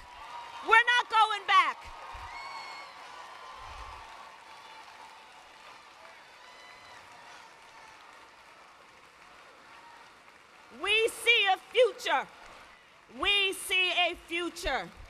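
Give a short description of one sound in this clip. A woman speaks forcefully through a microphone in a large echoing hall.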